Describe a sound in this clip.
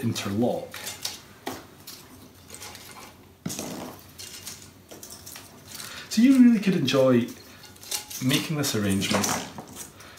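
Dry twigs and pine cones rustle and crackle under hands.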